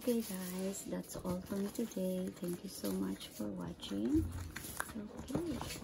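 Cardboard rustles and taps under a person's hands.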